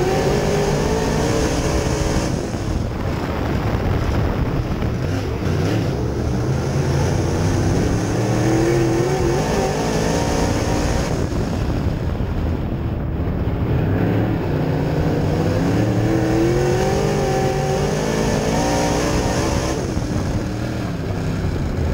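A race car engine roars loudly up close, revving up and down.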